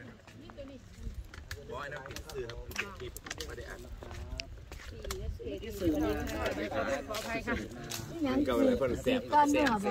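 A man and a woman chat nearby.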